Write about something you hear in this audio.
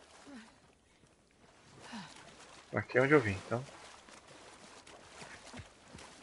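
A man wades through water with soft splashing.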